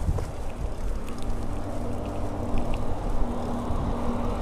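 A truck passes close by with a low engine rumble.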